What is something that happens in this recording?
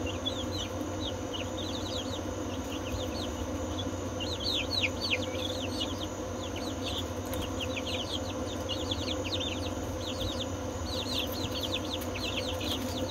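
Chicks peep rapidly and constantly close by.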